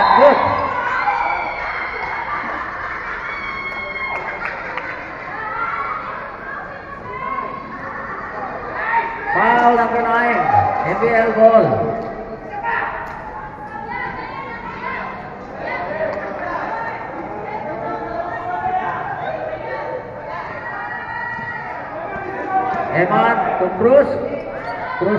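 A crowd of young spectators cheers and shouts.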